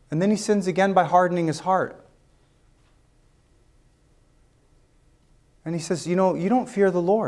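A man speaks calmly and clearly into a microphone, pausing briefly.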